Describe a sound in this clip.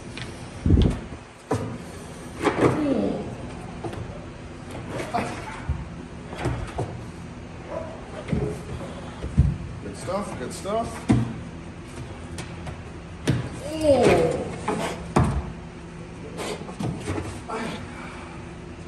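Heavy thuds and bumps sound as a dog lunges against a platform.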